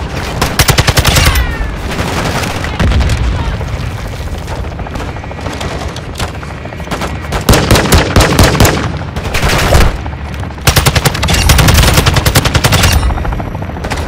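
Rapid gunfire bursts out in sharp volleys.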